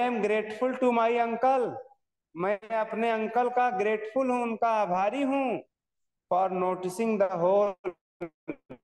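A young man reads aloud close by in a slow, sing-song voice.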